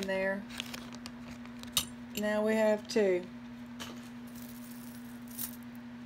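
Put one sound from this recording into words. Beads and metal jewelry clink softly as they are handled.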